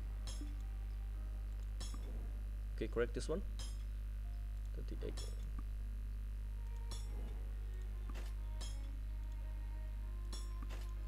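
Short interface chimes click repeatedly.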